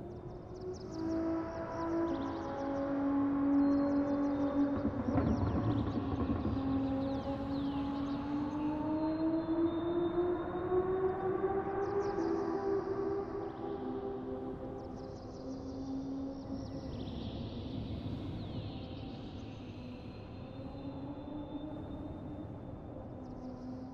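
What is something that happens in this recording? A racing car engine roars, its pitch rising and falling as it shifts gears.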